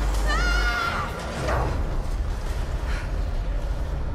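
A man lands with a thud on a hard floor.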